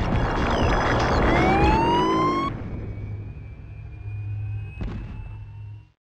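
Electronic pinball sound effects ring out with rising, sweeping tones.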